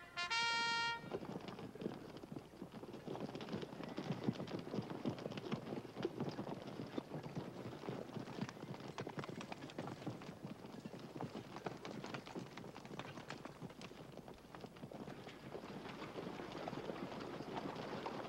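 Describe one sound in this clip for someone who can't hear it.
Many horses' hooves thud and clatter on dry ground.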